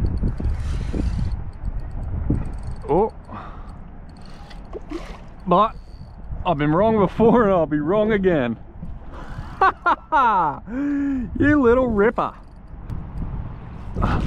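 A fishing reel whirs as the line is wound in.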